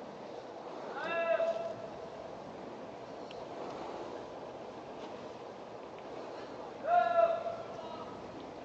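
A man calls out briefly outdoors.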